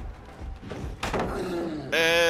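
A wooden pallet crashes down.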